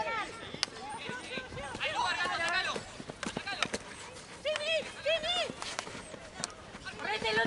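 Hockey sticks clack against a ball.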